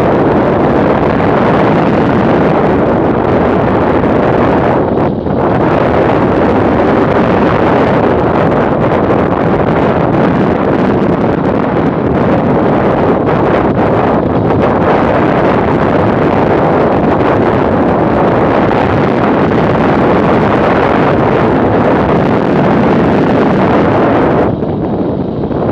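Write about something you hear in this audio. Wind roars loudly and steadily over a motorcycle rider's helmet.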